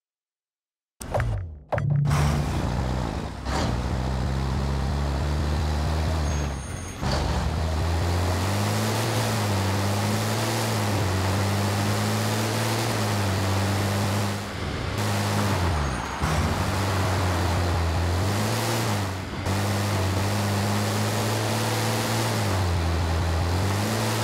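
A heavy truck engine roars and revs up and down as gears shift.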